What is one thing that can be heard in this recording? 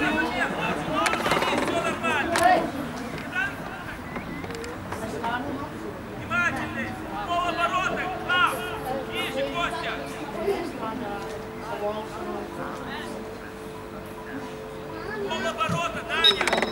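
Young male players shout to each other from across an open outdoor pitch.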